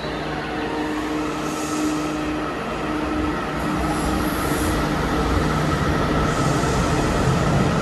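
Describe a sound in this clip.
A train pulls out of an echoing underground station with a rising hum.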